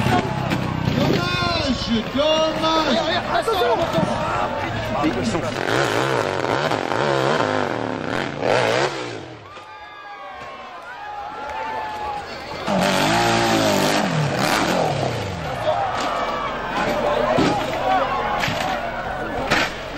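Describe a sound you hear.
A dirt bike engine revs hard and whines up and down.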